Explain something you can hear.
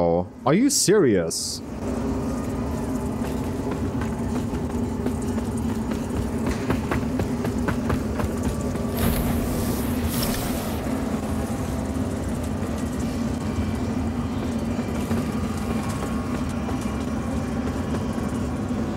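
Armoured footsteps clank on wooden boards and rocky ground.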